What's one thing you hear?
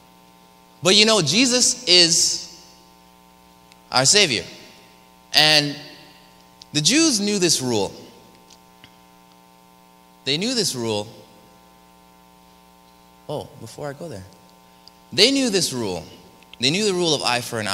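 A man speaks with animation in short phrases through a microphone in an echoing hall.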